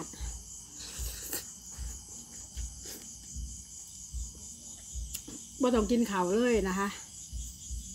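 A woman slurps and chews noodles close to a microphone.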